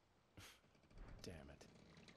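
A man mutters quietly.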